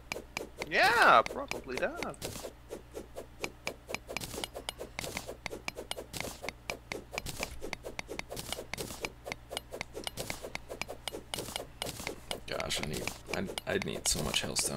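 A pickaxe chips rapidly at blocks, with quick repeated clicks.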